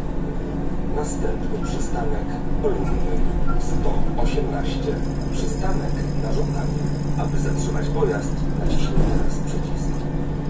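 Loose fittings rattle and clatter inside a moving bus.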